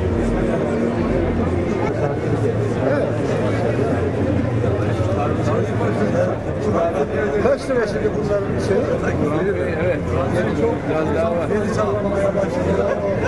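A crowd of men chatter and laugh close by.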